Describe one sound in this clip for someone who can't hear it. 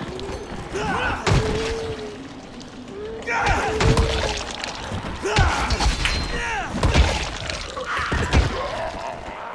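Zombies groan and snarl up close.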